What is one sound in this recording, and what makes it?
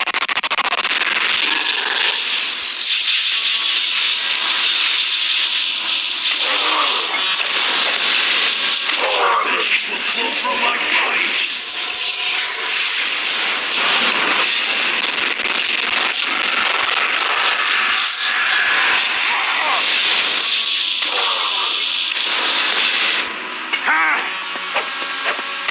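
Game sound effects of magical blasts crackle and whoosh.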